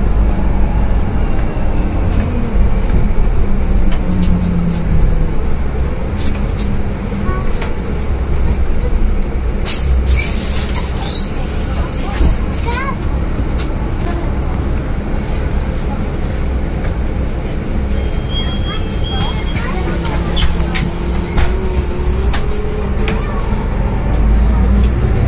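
The bus rattles and clatters over the road.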